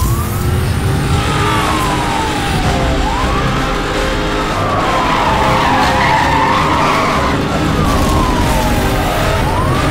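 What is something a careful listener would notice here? A police siren wails up and down, close by.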